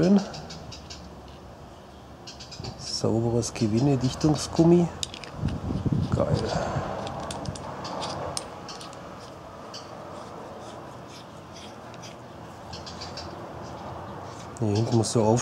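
Plastic parts click and scrape as they are twisted together by hand.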